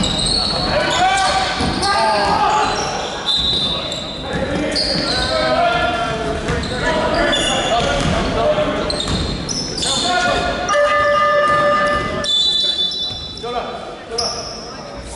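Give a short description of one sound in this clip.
Young players shout and call to each other across the court.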